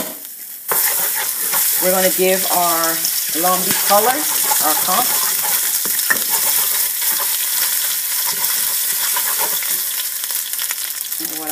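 A wooden spoon scrapes against a pan.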